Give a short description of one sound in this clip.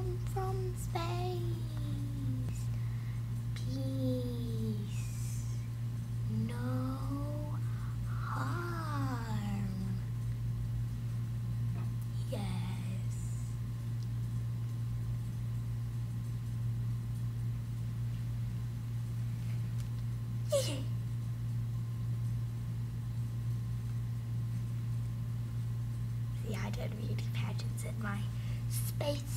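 A young girl speaks with animation, close to a microphone.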